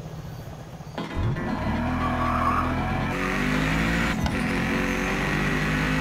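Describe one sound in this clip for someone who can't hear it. A car engine revs and roars steadily.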